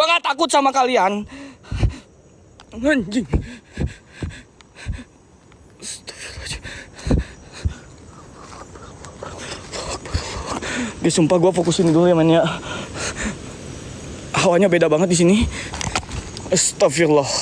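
Footsteps crunch on dry leaves in the undergrowth.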